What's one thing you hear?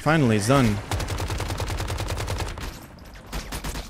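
Rapid gunfire rattles from a game.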